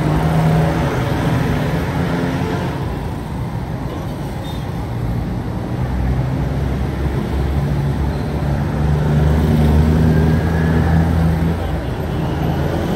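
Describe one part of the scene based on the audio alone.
Steady city traffic rumbles all around, outdoors.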